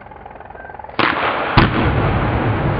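Two sharp explosive blasts go off in quick succession.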